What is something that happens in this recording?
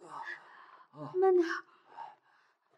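A young man speaks briefly in a low voice, close by.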